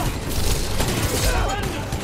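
Energy blasts zap and crackle.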